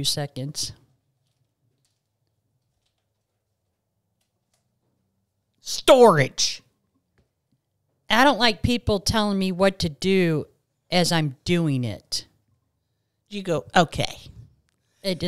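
A middle-aged woman speaks with animation, close to a microphone.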